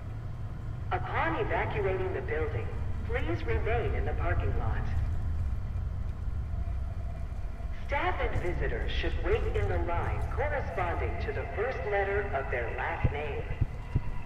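A man's voice calmly makes an announcement over a loudspeaker.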